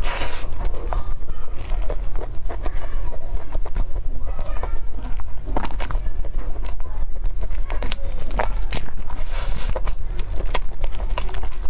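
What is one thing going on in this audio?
Plastic gloves crinkle close to a microphone.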